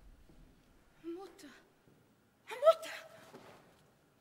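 A young woman cries out loudly in a singing voice.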